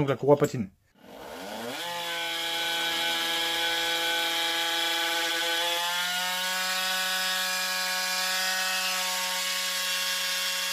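A small motorcycle engine starts and runs steadily.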